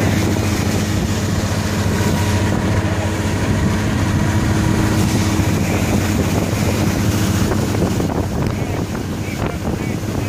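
Outboard motors drone loudly and steadily close by.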